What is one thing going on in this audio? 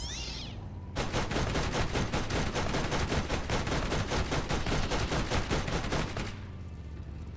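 A mounted machine gun fires in a rapid, continuous burst.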